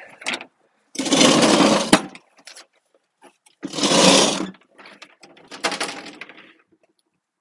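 A metal mower deck scrapes across concrete.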